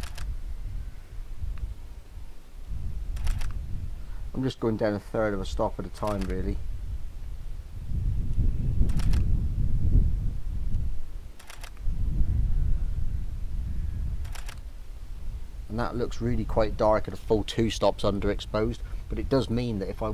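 Wind buffets a microphone outdoors in gusts.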